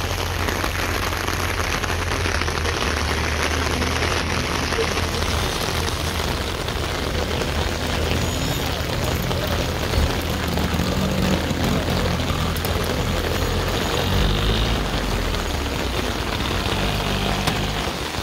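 An old tractor engine idles with a steady low chugging.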